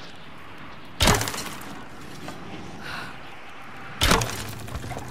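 Arrows thud sharply into wood.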